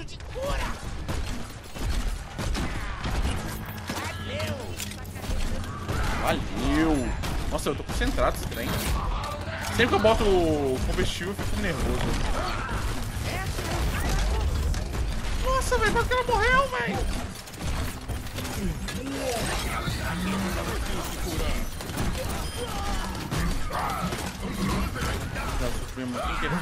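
Gunfire rattles rapidly in a game.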